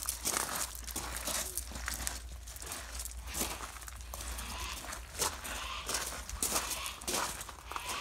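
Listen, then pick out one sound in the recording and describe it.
Dogs' claws patter on concrete.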